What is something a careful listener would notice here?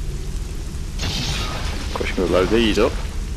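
An energy beam crackles and zaps.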